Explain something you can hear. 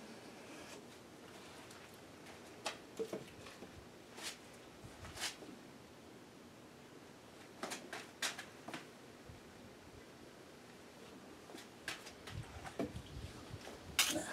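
Paint containers knock and tap against a hard floor.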